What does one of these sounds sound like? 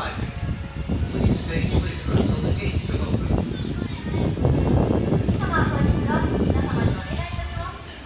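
A monorail train rumbles past along an elevated track.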